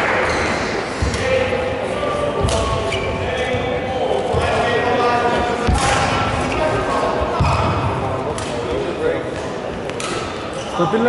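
A shuttlecock is struck sharply with a racket again and again.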